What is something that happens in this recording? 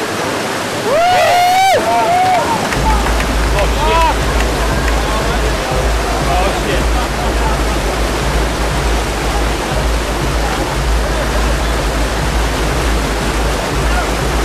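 Whitewater rushes and roars loudly through a rocky channel.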